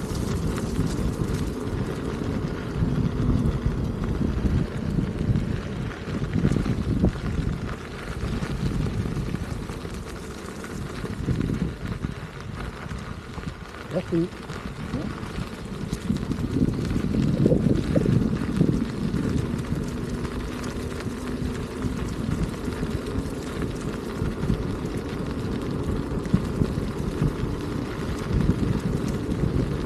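Tyres of a small electric vehicle crunch over a gravel path.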